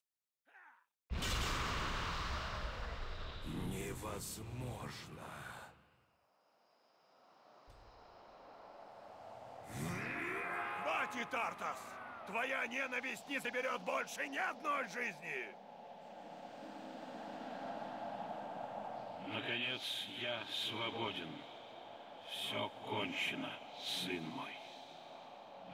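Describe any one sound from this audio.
Magical spell effects whoosh and crackle in a game.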